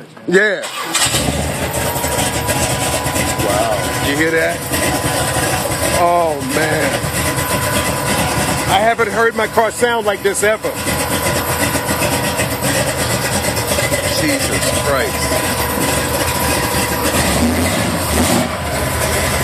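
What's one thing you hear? A car engine starts up and then runs loudly at a steady idle.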